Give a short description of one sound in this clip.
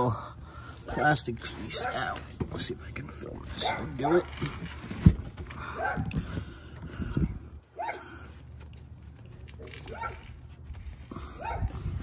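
A hand knocks and scrapes against metal parts under a car.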